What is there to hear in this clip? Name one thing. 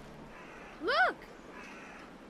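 A boy calls out urgently.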